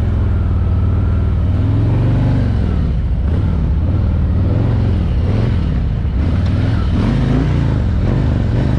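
A motorcycle engine rumbles and revs close by.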